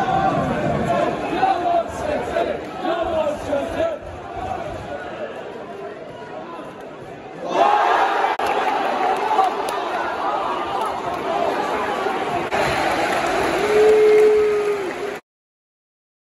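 A large crowd chants and sings loudly in an open stadium.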